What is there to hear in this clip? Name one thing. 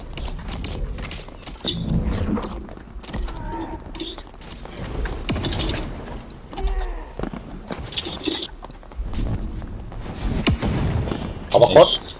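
A wooden chest lid creaks open.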